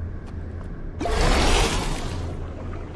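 A loud magical whoosh bursts out and fades.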